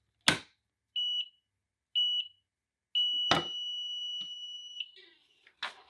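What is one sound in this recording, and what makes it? A heat press beeps in short tones, then one long tone.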